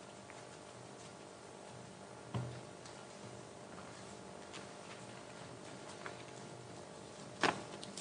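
Paper rustles and crinkles close to a microphone.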